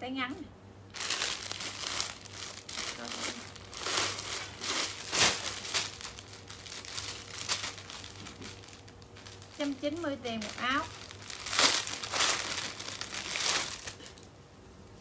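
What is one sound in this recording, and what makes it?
Plastic wrapping and clothes rustle as they are handled.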